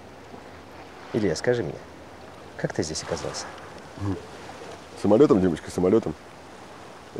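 A second man answers calmly nearby.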